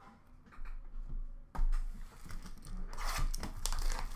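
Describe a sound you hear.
A card pack is picked up from a plastic tray with a soft clatter.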